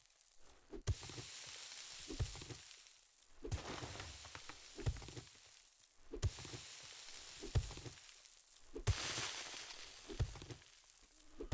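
Loose soil and grass rustle between the blows.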